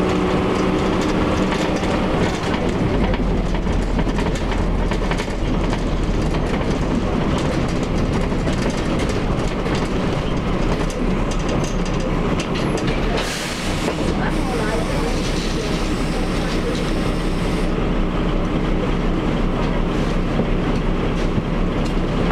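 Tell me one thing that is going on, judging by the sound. Loose fittings rattle and shake as a bus moves.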